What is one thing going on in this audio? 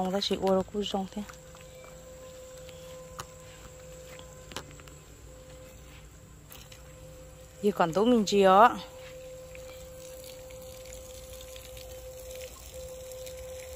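Water splashes from a watering can onto soil.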